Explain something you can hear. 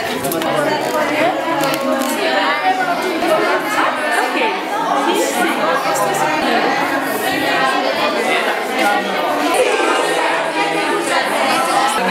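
A young woman talks with animation nearby.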